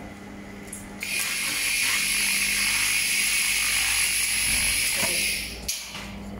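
A laser hisses and crackles loudly as it cleans rusty metal.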